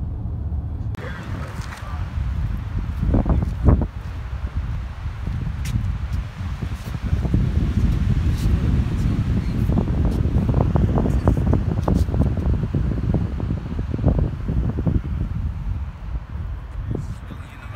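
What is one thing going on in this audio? Wind blows and rumbles outdoors.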